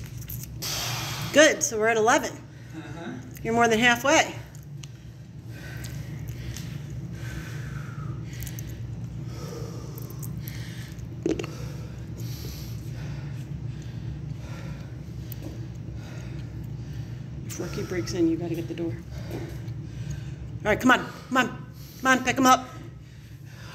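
A middle-aged man talks, out of breath.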